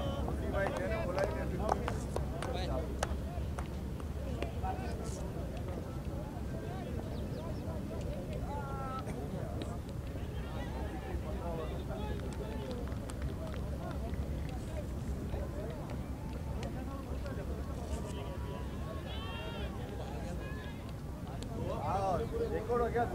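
Men talk and call out across an open field at a distance.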